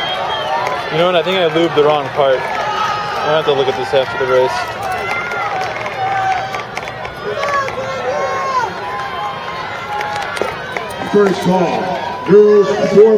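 Spectators shout encouragement to runners.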